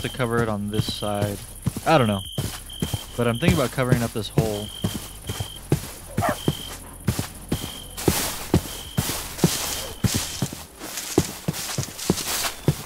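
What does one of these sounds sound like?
Footsteps tread steadily through grass.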